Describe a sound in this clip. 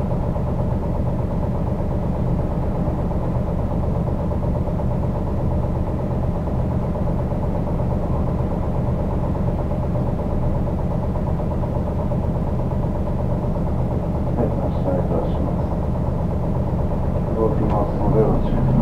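Traffic hums steadily along a busy city street.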